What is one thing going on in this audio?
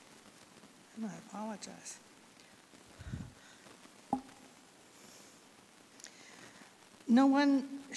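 An elderly woman speaks calmly through a microphone in an echoing room.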